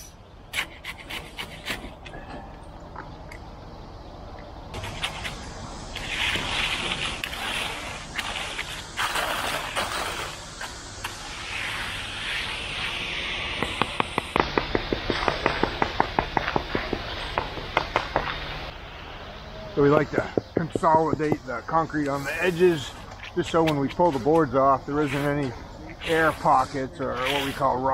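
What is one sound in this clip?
A metal hand tool scrapes across wet concrete.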